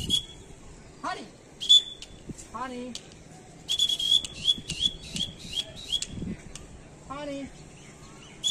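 A young man calls out loudly outdoors.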